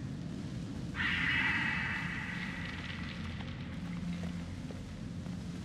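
A flare sizzles and hisses as it burns.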